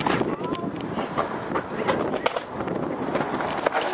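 A skateboard clatters on pavement as a skater falls.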